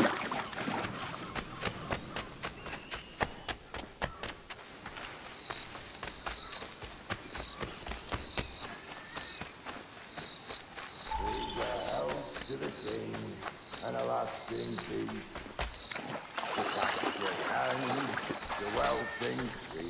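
Footsteps run over ground and leaves.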